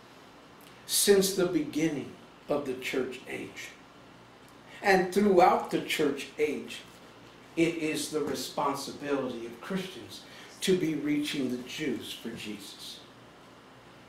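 An older man speaks calmly into a microphone, pausing between phrases.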